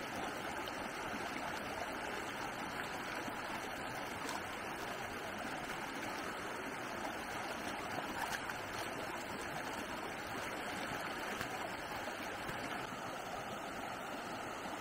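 A shallow stream rushes and babbles steadily over rocks.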